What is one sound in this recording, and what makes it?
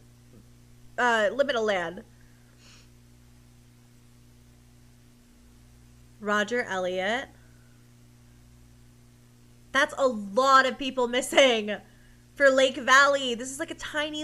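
A young woman talks with animation into a close microphone, in short bursts.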